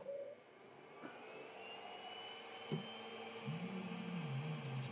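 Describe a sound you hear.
A machine's motors start up and whir steadily.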